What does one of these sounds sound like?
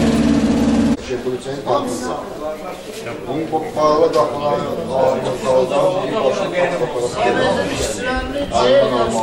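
A crowd of men murmur and chatter.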